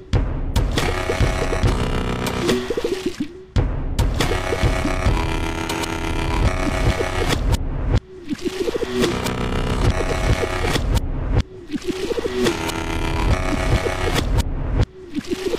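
A cartoon creature sings a bubbly, warbling melody over a bouncy beat.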